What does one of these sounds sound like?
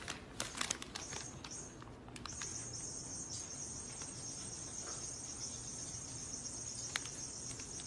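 A paper bag rustles softly.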